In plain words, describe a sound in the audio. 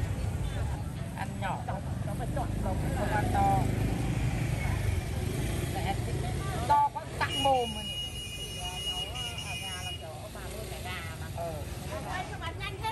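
Two women talk with each other nearby.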